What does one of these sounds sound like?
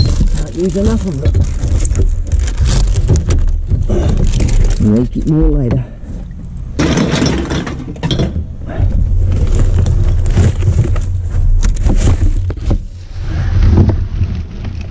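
Plastic bags and rubbish rustle and crinkle.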